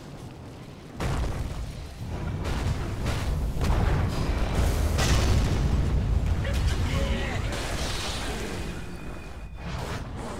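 Swords clash and magic blasts burst in a fight.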